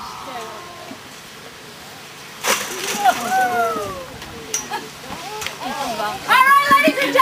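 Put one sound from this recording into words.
A woman speaks loudly nearby.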